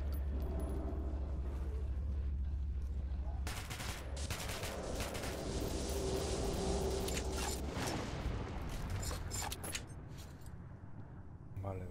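Flames crackle nearby.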